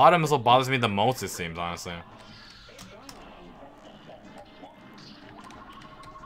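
Quiet electronic game sound effects zap and chime.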